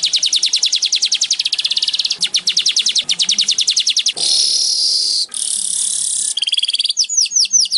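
A small bird chirps in fast, buzzing trills close by.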